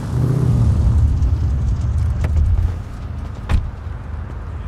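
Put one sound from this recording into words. A car door opens.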